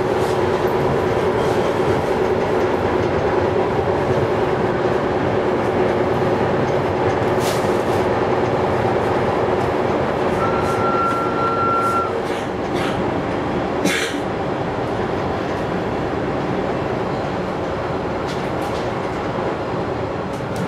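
An electric train rumbles along the track at speed, heard from inside the carriage.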